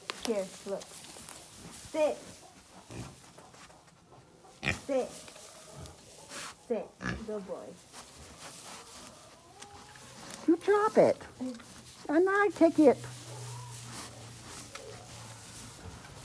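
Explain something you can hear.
Hay rustles under hooves.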